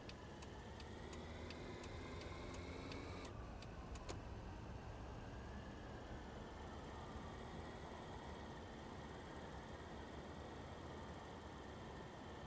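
A car engine hums and rises in pitch as the car speeds up.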